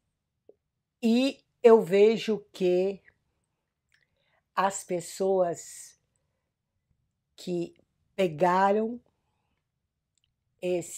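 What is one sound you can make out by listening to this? An elderly woman speaks calmly and clearly, close by, in short phrases with pauses.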